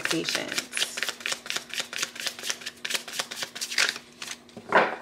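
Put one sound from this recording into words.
Playing cards riffle rapidly as a deck is shuffled.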